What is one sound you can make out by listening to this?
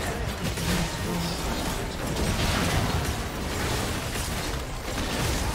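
Magic blasts crackle and whoosh in a fast video game battle.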